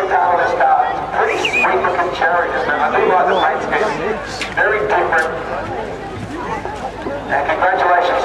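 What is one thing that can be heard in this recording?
A crowd of spectators chatters nearby.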